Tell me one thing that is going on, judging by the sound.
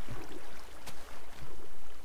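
A pig grunts.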